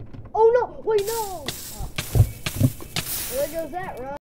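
Lava hisses and crackles loudly.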